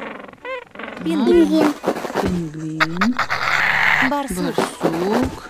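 A kitten meows several times.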